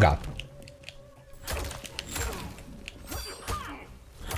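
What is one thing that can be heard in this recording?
Punches and kicks land with sharp thuds in a fighting game.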